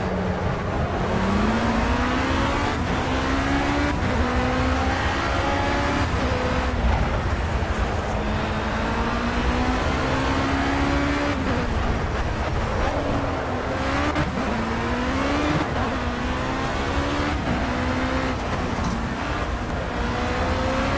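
A racing car engine screams, rising in pitch through each gear and dropping with each shift.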